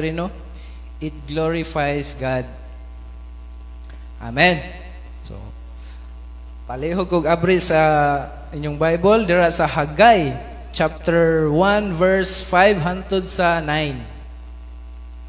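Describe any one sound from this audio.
A man speaks with animation into a microphone, heard through loudspeakers in an echoing room.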